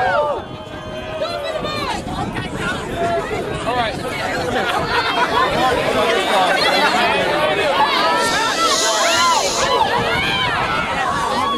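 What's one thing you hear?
A large crowd of young people shouts and cheers outdoors, growing louder.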